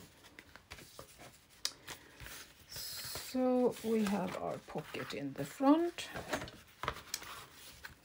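Paper rustles and crinkles as it is handled close by.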